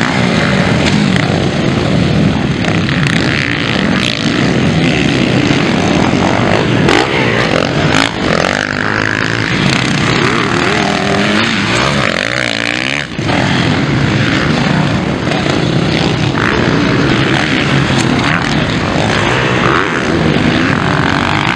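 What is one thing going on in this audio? Dirt bike engines roar and rev loudly as they race past.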